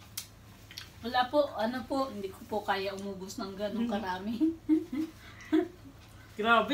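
A woman talks and laughs close by.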